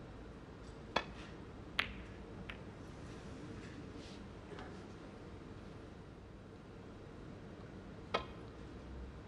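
A snooker cue strikes the cue ball.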